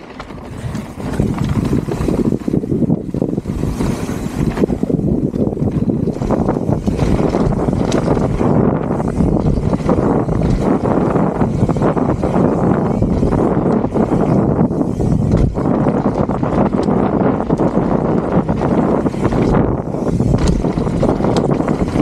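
Wind buffets the microphone of a moving rider.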